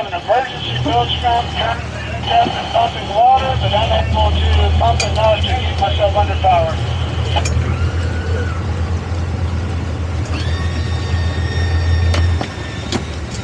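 A boat engine rumbles low and steady.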